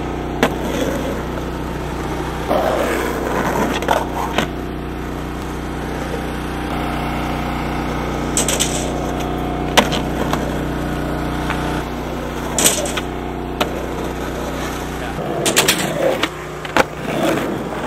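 A skateboard clacks hard as it lands on concrete.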